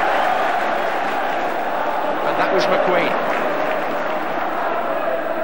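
A large stadium crowd roars steadily outdoors.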